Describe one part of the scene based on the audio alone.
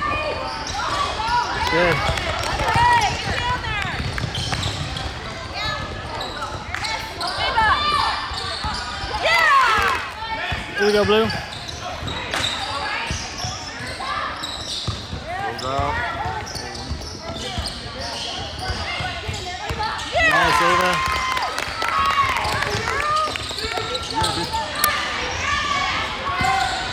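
Girls shout and call out during a basketball game in a large echoing gym.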